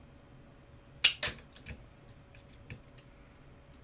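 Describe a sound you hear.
Small objects tap and clatter close by.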